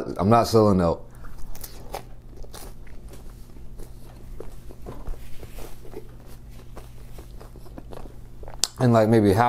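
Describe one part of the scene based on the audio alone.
A young man chews food with his mouth closed.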